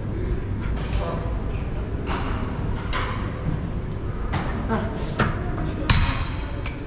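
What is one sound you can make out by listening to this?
Weight plates on a cable machine clank as they lift and drop.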